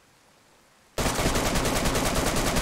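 A rifle fires in a loud, rapid burst.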